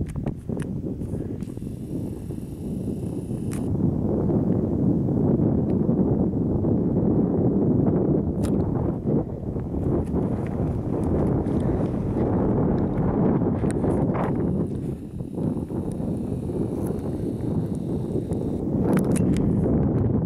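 Wind blows hard across an open, exposed outdoor spot, rumbling against the microphone.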